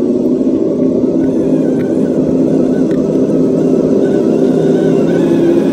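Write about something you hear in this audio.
Small electric motors whine steadily.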